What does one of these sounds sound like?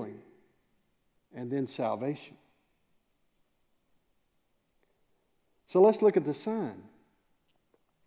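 A middle-aged man speaks calmly through a microphone in a large room, with pauses between phrases.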